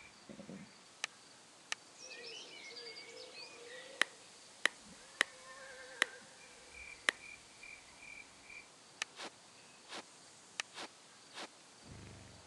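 Soft game menu clicks sound as options are toggled.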